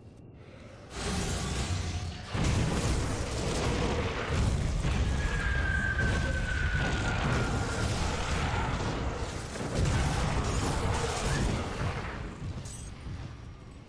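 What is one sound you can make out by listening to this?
Fiery spell blasts roar and crackle in a game battle.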